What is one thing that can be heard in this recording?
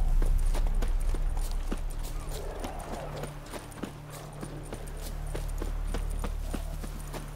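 Footsteps run quickly over grass and soft ground.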